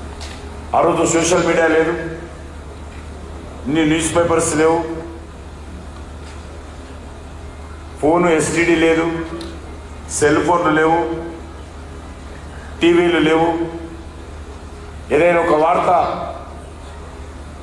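A man gives a loud, impassioned speech through a microphone and loudspeakers, in short bursts with pauses.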